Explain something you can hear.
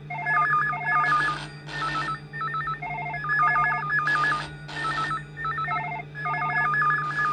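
Several telephones ring loudly with a warbling electronic trill.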